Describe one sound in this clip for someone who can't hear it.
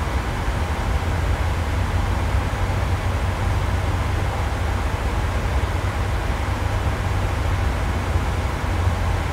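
A jet airliner's engines drone with a steady low rumble.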